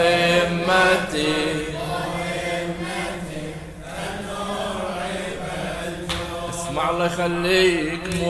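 A man chants loudly and mournfully into a microphone, with echo.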